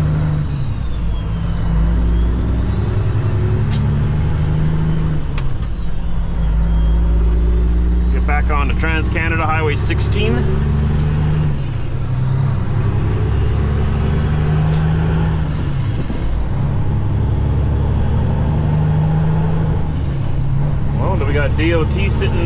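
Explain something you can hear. A truck engine rumbles steadily, its pitch rising and falling as gears change.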